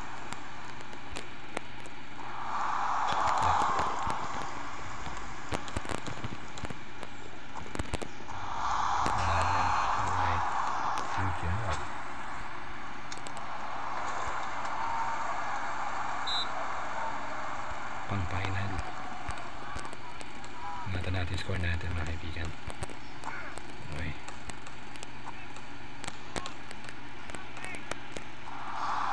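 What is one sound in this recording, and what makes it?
A basketball bounces on a wooden floor with sharp thumps.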